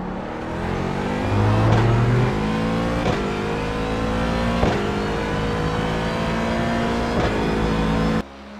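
A racing car engine roars, rising in pitch and dropping with each quick gear shift.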